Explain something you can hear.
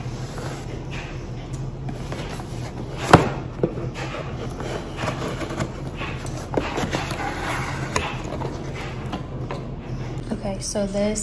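A cardboard box scrapes and rustles as hands handle it.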